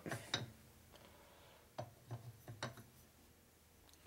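Metal engine parts clink softly as they are fitted together.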